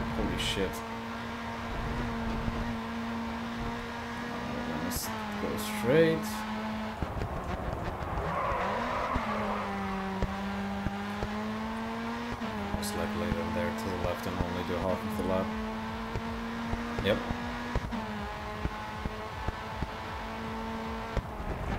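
A race car engine roars steadily, shifting pitch as it changes gear.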